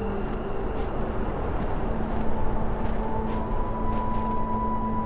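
Footsteps crunch slowly through deep snow.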